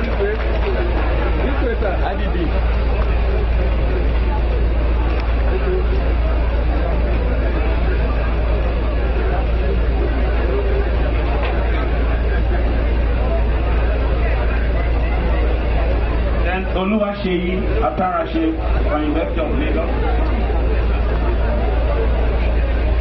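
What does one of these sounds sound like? A large crowd chatters loudly in a big hall.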